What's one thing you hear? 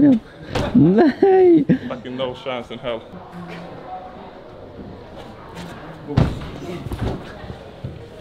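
A man's feet thud onto a padded floor after a drop.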